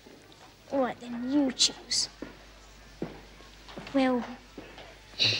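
A girl speaks softly and playfully nearby.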